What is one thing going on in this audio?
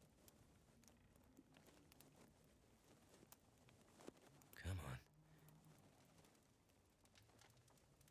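A small fire crackles softly in a stove.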